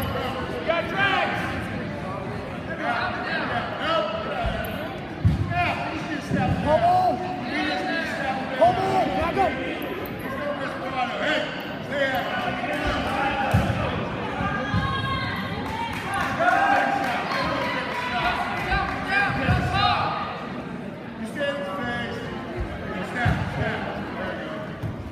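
Wrestlers' feet thud and scuff on a mat.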